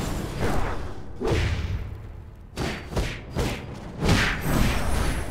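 Magic blasts whoosh and burst in quick succession.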